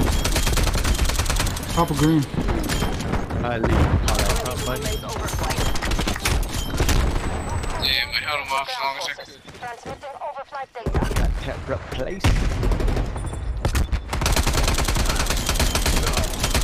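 Automatic rifle fire rattles in a video game.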